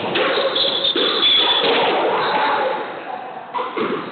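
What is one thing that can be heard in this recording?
A squash ball smacks against the walls with hollow echoing thuds.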